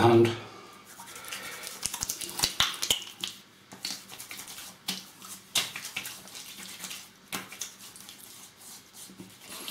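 A man rubs cream onto his face with his hands, making soft crackling sounds.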